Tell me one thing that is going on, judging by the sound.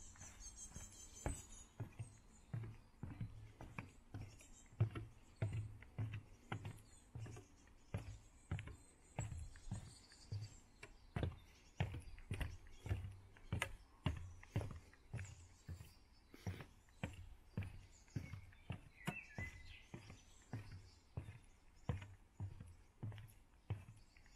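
Footsteps thud steadily on wooden boards.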